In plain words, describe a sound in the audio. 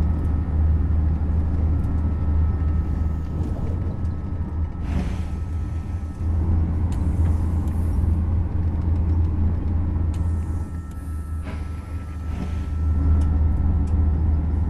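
A high-speed train rumbles along the track, heard from inside a carriage.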